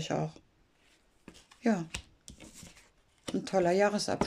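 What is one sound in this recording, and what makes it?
Playing cards are laid down onto a cloth-covered table.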